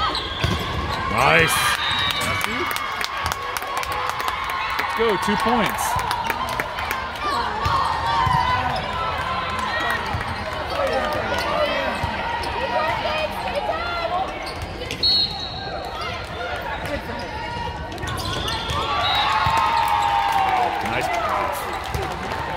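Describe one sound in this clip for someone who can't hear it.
A volleyball is struck with loud slaps.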